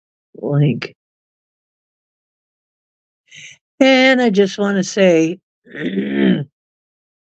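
A middle-aged woman talks calmly into a microphone.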